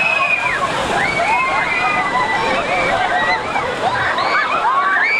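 A crowd of men and women shout and scream excitedly outdoors.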